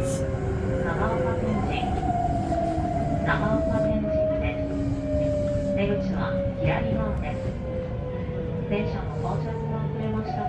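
Wheels clack over rail joints now and then.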